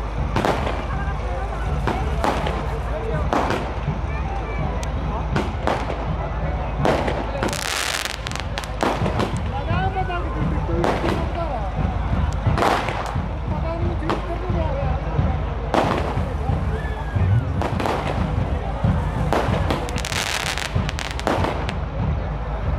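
A firework crackles and fizzes.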